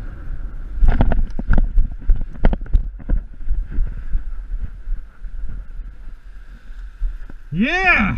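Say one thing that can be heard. A paraglider wing flaps and rustles in the wind.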